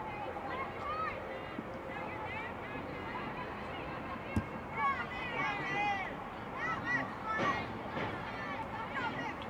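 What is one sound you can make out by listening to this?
Young women shout to each other across an open field outdoors.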